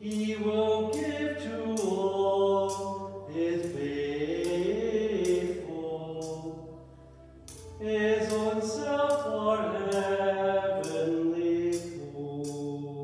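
A censer's metal chains clink rhythmically as it swings.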